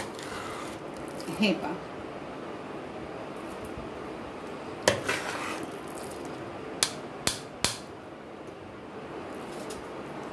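A metal spoon stirs thick food in a steel pot, scraping and clinking against the side.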